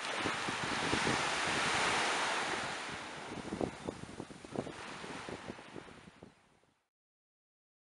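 Small waves wash steadily onto the shore and slowly fade.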